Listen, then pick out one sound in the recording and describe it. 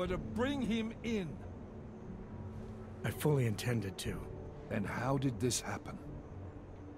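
A middle-aged man speaks sternly in a low voice, close by.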